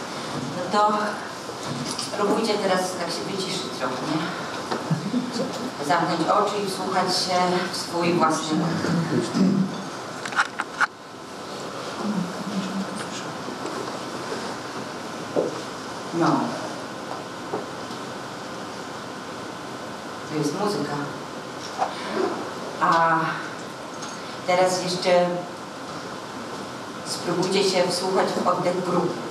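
A young woman speaks calmly and softly, with long pauses.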